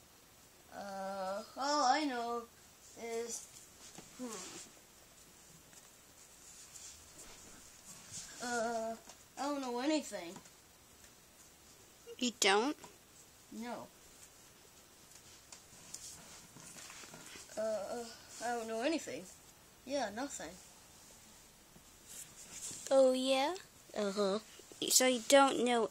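A young child talks playfully close by, in short bursts.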